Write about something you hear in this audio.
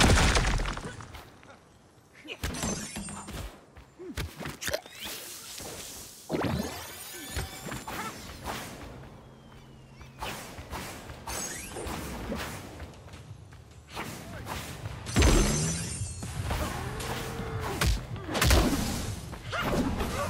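Game explosions burst and crackle.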